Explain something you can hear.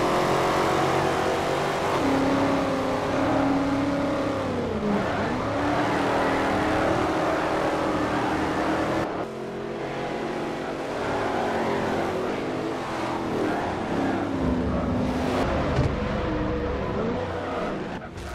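Several other car engines drone close by.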